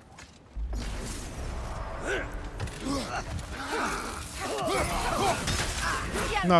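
Creatures screech and growl in a fight.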